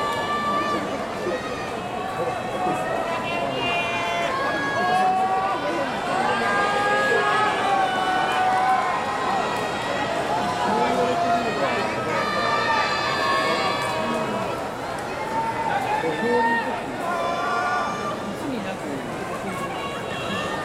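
A large crowd murmurs steadily.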